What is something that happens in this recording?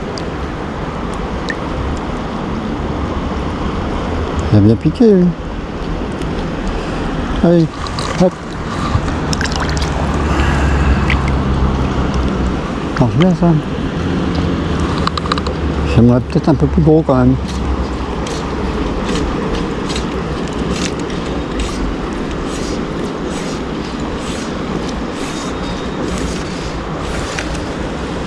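A river flows steadily nearby.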